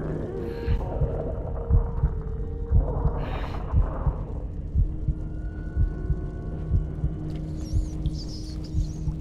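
Small footsteps thud slowly and evenly on a hard floor.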